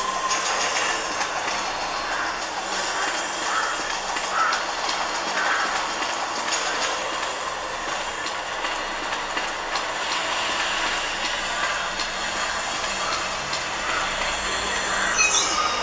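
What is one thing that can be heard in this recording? Video game sounds play from a small phone speaker.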